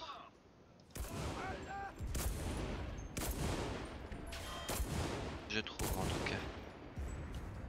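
A rifle fires repeated close, sharp shots.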